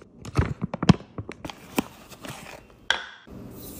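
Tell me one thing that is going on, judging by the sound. A scoop digs into powder.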